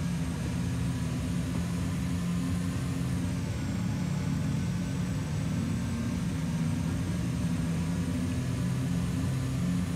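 A train's electric motor hums steadily as the train rolls along the track.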